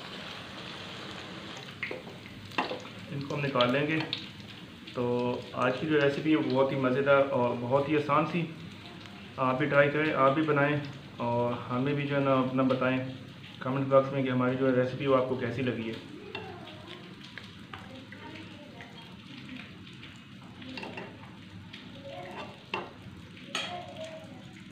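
A metal ladle clinks against the side of a metal pan.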